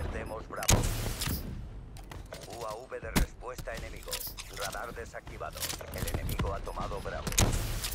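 A rocket launcher fires with a heavy boom.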